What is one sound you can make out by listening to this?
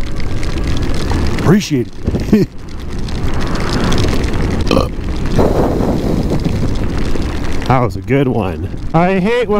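Tyres rumble over a wet gravel road.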